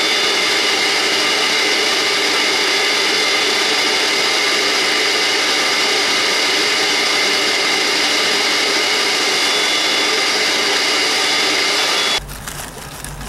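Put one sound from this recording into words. A shop vacuum runs, sucking through a hose.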